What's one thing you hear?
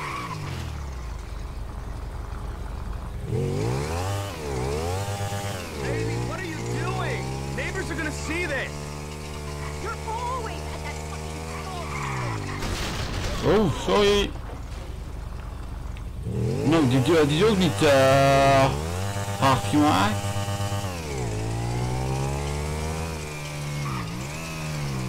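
A motorcycle engine revs up and down as it rides.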